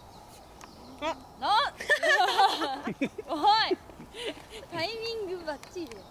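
A young woman exclaims loudly and laughs.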